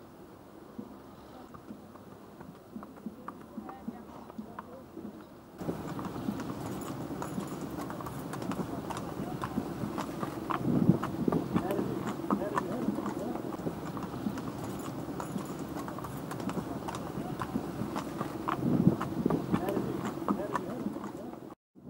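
Horse hooves clop on a paved road.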